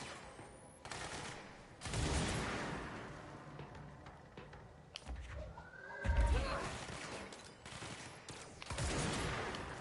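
Gunshots blast in rapid bursts.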